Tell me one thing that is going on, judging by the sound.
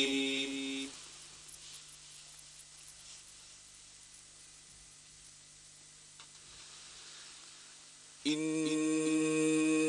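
A middle-aged man chants in a long, melodic, held voice through a microphone.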